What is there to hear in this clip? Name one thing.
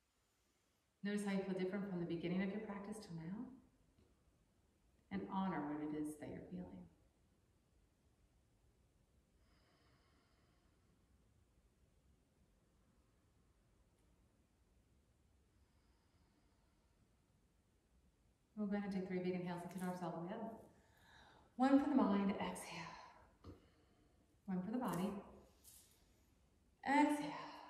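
A woman speaks calmly and softly, close by, with long pauses.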